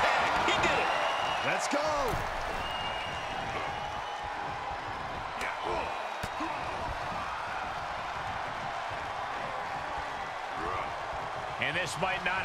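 Heavy thuds of bodies hitting a wrestling ring.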